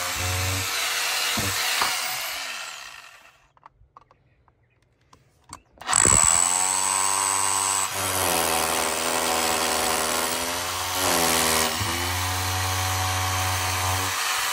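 A power drill whirs loudly as it bores into brick.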